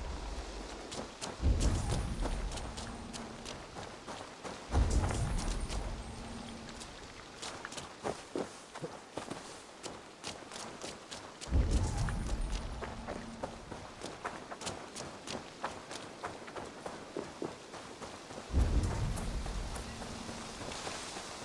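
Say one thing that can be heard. Quick footsteps run over soft ground.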